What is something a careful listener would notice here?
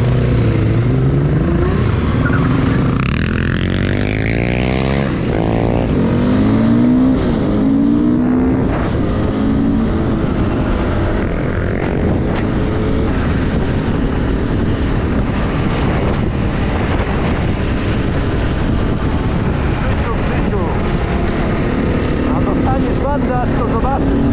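A motorcycle engine roars up close, revving up and down.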